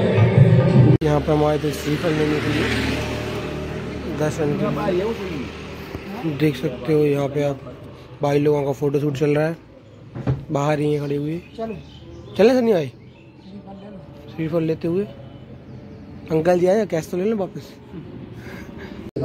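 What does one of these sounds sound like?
A young man talks nearby with animation.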